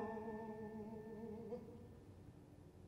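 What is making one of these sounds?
A young man sings loudly in an operatic voice in a large echoing hall, his last note ending.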